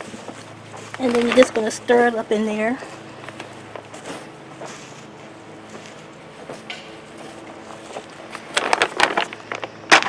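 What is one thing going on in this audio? Loose soil rustles and crunches as a gloved hand stirs it.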